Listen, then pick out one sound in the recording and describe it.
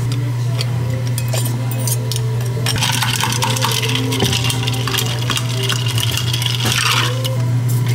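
Liquid pours over ice into a glass.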